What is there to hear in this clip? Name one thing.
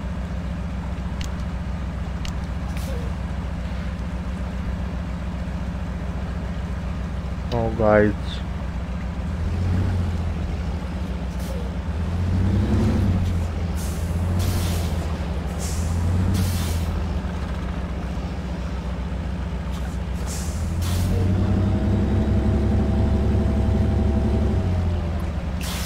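A heavy truck engine rumbles low and steady, swelling in bursts.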